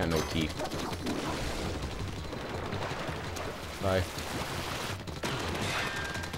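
Video game ink splatters with wet splashing bursts.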